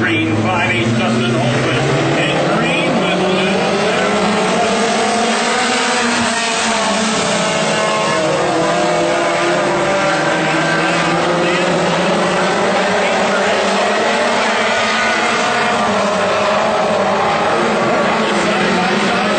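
Several modified stock car engines roar as the cars race around a dirt oval.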